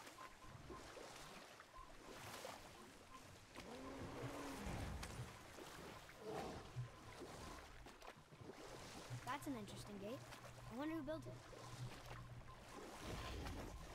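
Oars splash and dip in water as a boat is rowed.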